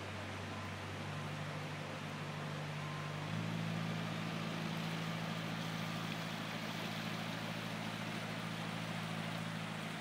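Boat engines idle nearby with a low, steady hum.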